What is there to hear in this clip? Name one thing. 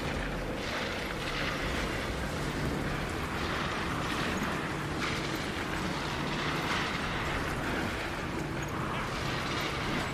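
Electricity crackles and buzzes.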